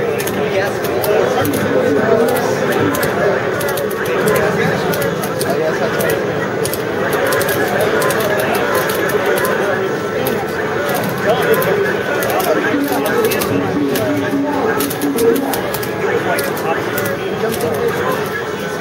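Arcade game music plays steadily.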